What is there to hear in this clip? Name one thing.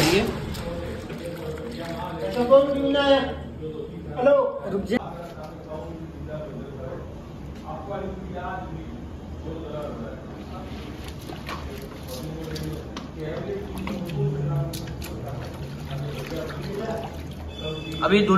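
Water sloshes and splashes.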